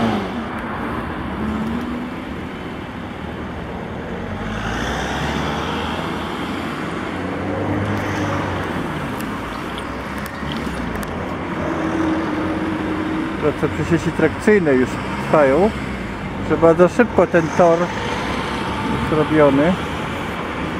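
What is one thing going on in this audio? A train rumbles steadily across a bridge in the distance.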